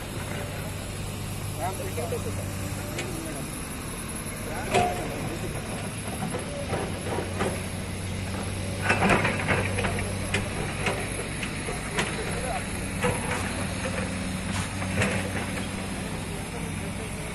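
A low engine hums steadily nearby.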